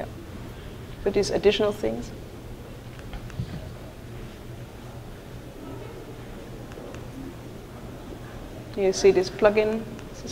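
A woman speaks through a microphone in short bursts, with long pauses.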